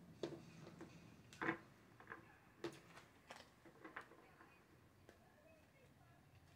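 Cards shuffle and tap with soft clicks close by.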